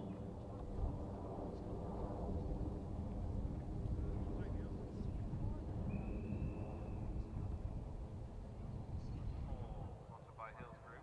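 Wind buffets the microphone outdoors with a low rumble.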